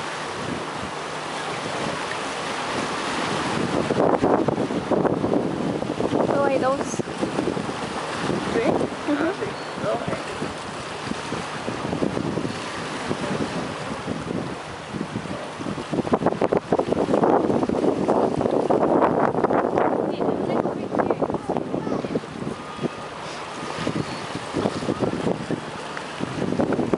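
Sea water laps and splashes against a concrete pier.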